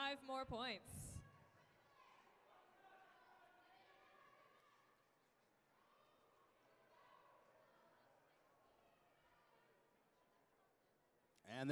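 A crowd murmurs and chatters in the background.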